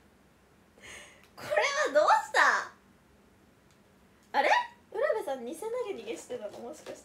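A young woman talks brightly and close by.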